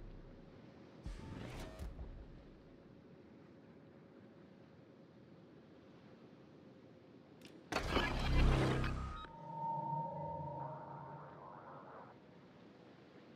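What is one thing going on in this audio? Water rushes and splashes along the hull of a large ship moving at speed.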